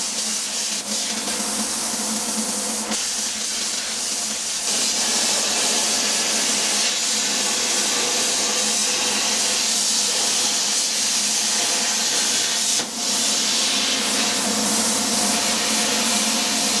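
A plasma torch hisses loudly as it cuts through steel.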